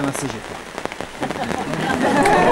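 A man speaks to a crowd.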